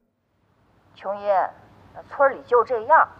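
A woman speaks on a phone.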